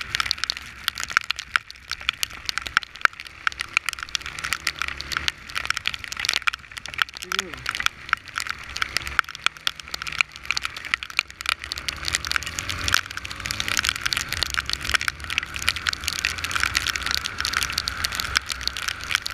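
Strong wind buffets and crackles against a microphone.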